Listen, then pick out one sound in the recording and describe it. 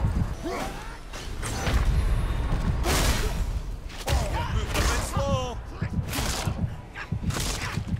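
Heavy blows and crashes ring out in a fight.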